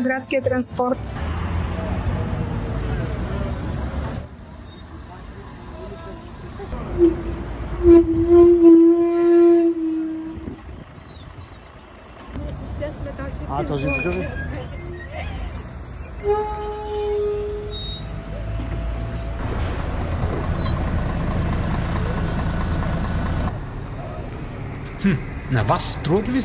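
A bus engine rumbles close by.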